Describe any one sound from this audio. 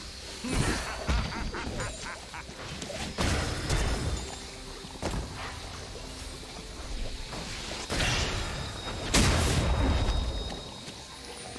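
Video game spells whoosh and crackle in bursts.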